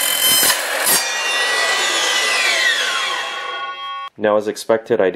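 A saw blade whines down to a stop.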